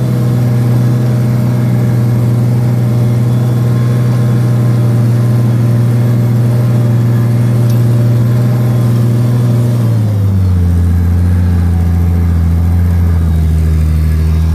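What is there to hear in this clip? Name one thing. A tractor engine drones loudly and steadily, dropping lower in pitch partway through.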